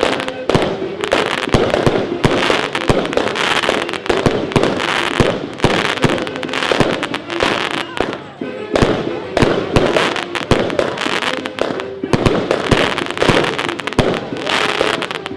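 Fireworks crackle and fizz in the sky.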